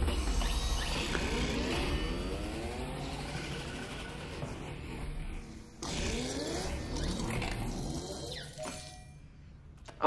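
A machine whirs with sweeping, rising tones.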